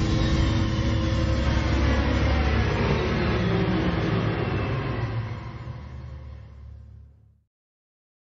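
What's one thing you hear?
A large fire roars and crackles, then slowly fades.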